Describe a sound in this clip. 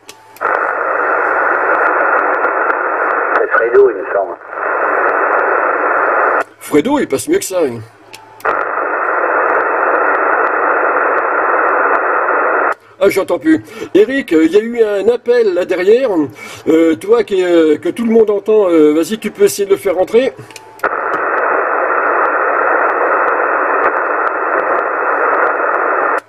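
Radio static hisses steadily from a loudspeaker, breaking off now and then.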